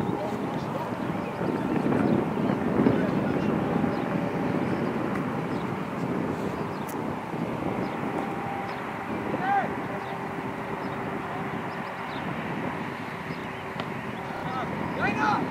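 Teenage boys shout to each other across an open field.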